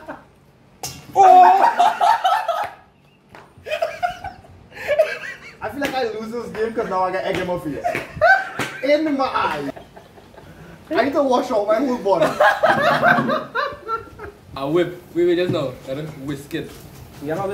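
Young men laugh loudly.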